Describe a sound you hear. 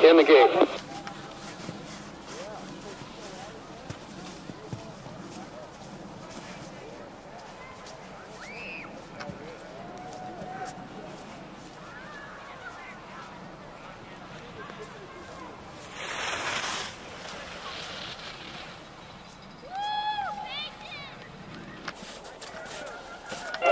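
Onlookers call out and cheer outdoors at a distance.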